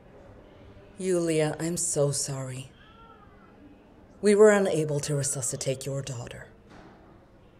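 An older woman speaks calmly and firmly, close by.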